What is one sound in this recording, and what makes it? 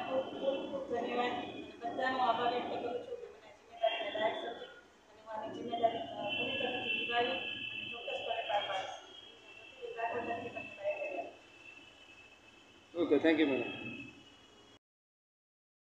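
A middle-aged woman speaks calmly into a microphone close by.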